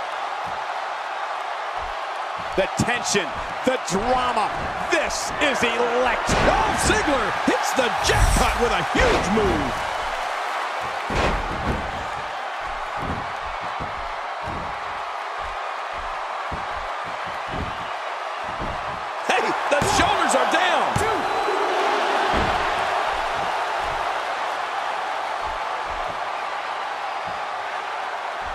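Heavy bodies thud onto a wrestling ring mat.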